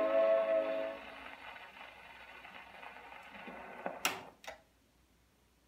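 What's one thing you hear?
A gramophone needle hisses and crackles in the record's run-out groove.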